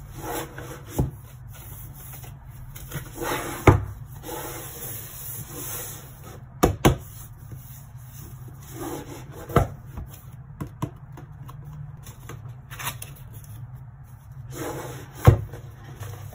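A cardboard box thumps and knocks onto a hard surface.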